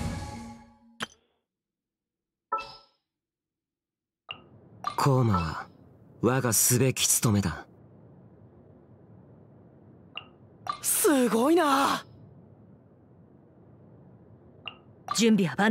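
Short soft chimes sound as menu selections are made.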